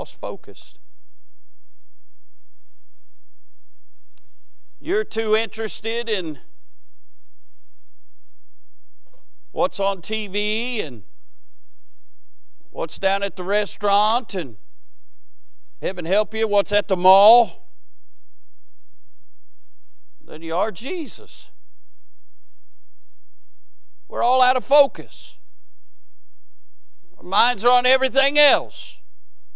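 A man preaches through a microphone in short bursts with long pauses, in a large echoing hall.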